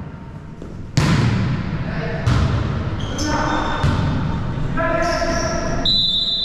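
A volleyball is struck with sharp smacks in an echoing hall.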